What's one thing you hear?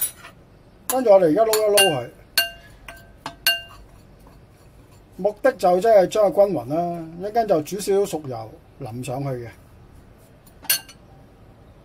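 A metal spoon scrapes and clinks against a ceramic bowl.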